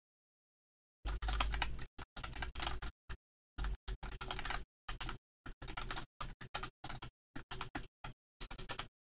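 Keys clatter quickly on a keyboard.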